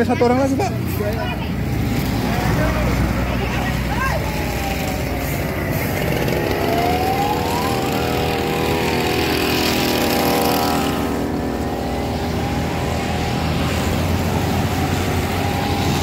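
Traffic rumbles past on a road outdoors.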